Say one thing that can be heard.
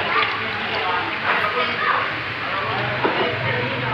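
A ladle splashes and scoops liquid from a bucket.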